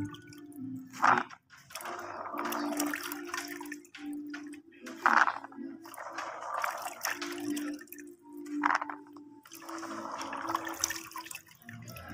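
Handfuls of small bulbs rustle and clatter in a plastic tub.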